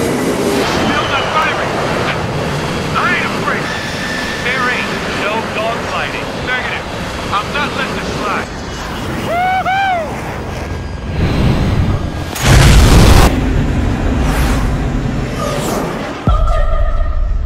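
Jet engines roar loudly.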